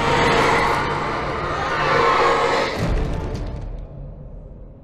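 A man screams in anguish.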